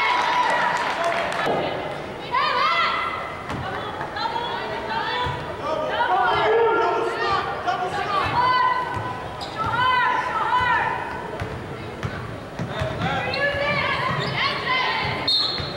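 Basketball sneakers squeak sharply on a hardwood court in a large echoing gym.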